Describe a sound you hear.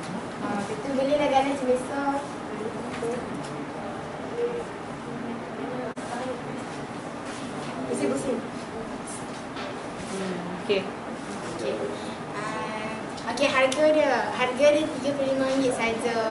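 Young girls speak with animation close by.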